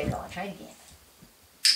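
A woman speaks softly to a dog.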